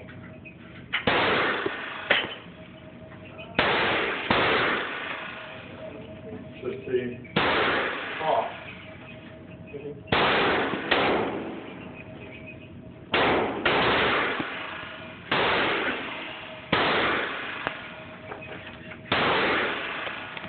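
A pistol fires single loud shots that echo in an enclosed range.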